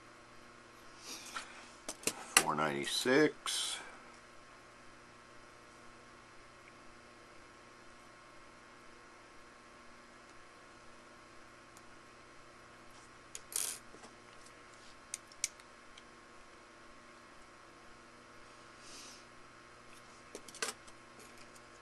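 Small metal parts click and tap together in a person's hands.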